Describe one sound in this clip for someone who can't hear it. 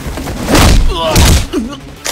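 A young man cries out in pain.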